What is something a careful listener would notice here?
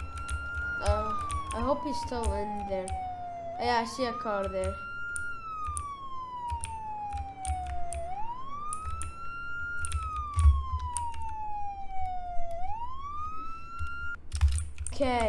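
A police siren wails, rising and falling slowly.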